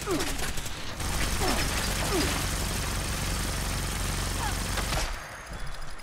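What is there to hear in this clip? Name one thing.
A laser weapon fires with a steady buzzing hiss.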